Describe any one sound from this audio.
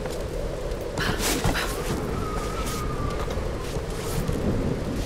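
Wooden boards creak and thud as someone climbs.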